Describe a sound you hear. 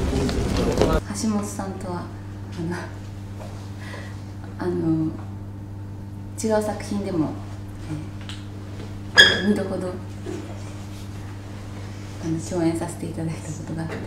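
A young woman speaks calmly and cheerfully close to a microphone.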